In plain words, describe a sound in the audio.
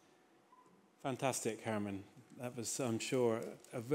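A second man speaks through a microphone.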